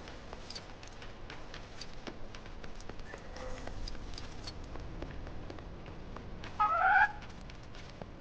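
Small footsteps patter quickly over rocky ground.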